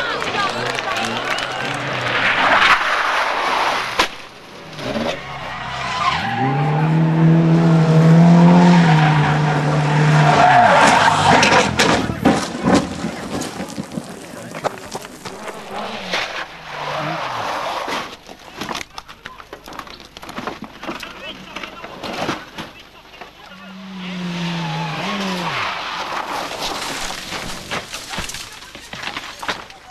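A rally car engine roars and revs hard as cars race past.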